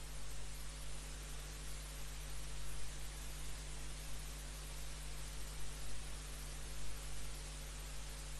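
A keyboard plays music over loudspeakers.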